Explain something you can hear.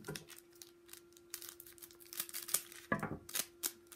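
Scissors snip through a foil packet.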